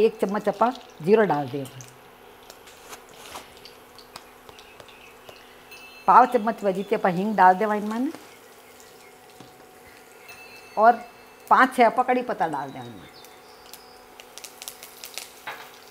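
Hot oil sizzles softly as seeds fry.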